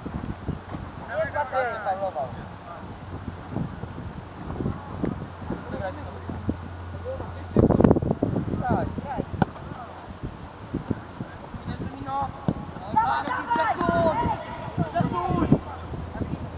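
Boys call out across an open field in the distance.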